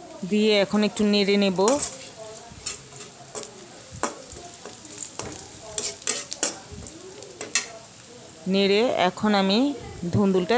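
Food sizzles in hot oil.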